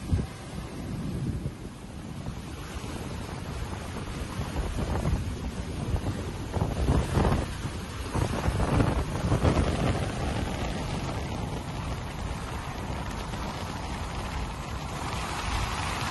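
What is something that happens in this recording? Small waves lap and wash gently against the shore.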